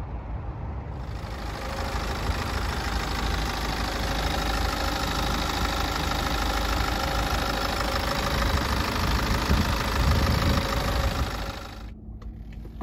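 A four-cylinder diesel engine idles.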